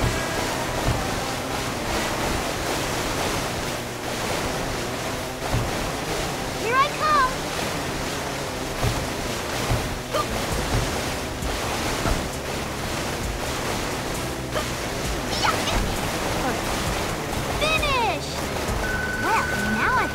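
A jet ski engine roars at high speed.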